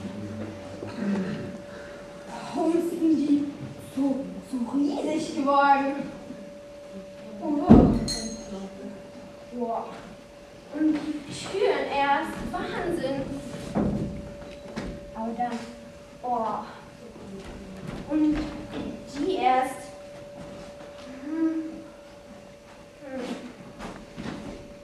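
A young girl speaks through a microphone, heard over loudspeakers in a hall.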